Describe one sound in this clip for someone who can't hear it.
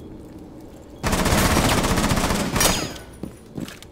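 Rapid gunfire rattles loudly at close range.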